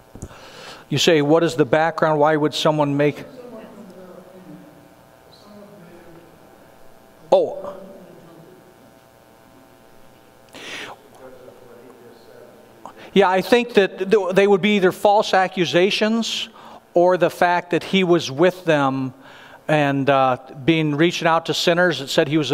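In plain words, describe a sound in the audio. A man speaks to a group in a large room, loud and close, pausing now and then.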